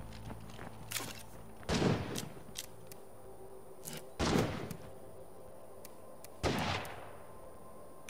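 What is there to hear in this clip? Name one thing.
Menu selections click and whoosh.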